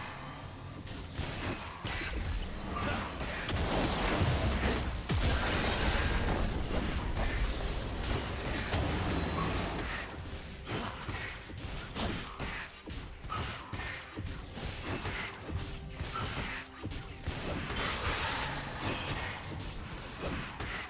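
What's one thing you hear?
Game sword strikes clash and thud.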